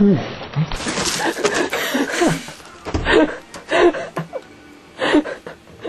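A young woman laughs loudly and shrieks close by.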